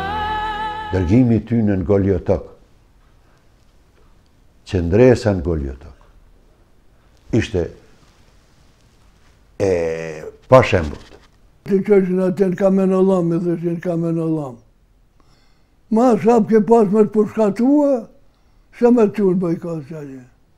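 An elderly man speaks calmly and earnestly, in pauses, close to a microphone.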